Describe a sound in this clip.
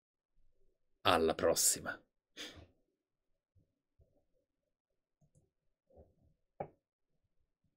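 A man speaks with animation, close to a microphone, in short bursts.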